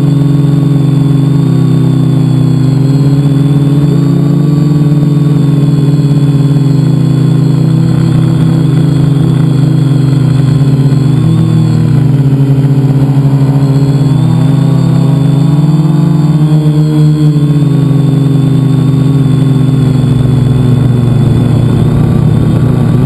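A drone's propellers buzz loudly and steadily, rising and falling in pitch.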